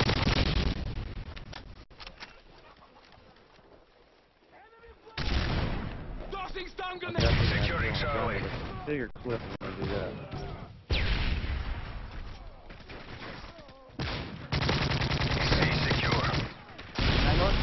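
Rapid rifle gunfire rattles in bursts.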